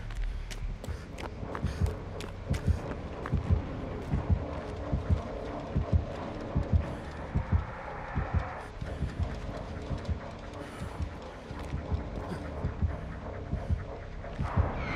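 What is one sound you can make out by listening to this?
Footsteps thud quickly through tall grass.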